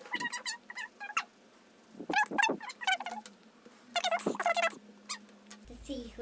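A young girl talks with animation, close by.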